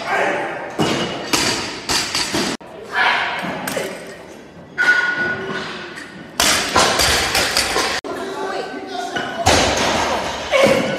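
Weight plates clang as a barbell drops to the floor.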